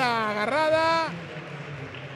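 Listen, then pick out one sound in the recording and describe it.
A man calls out loudly in a long drawn-out shout.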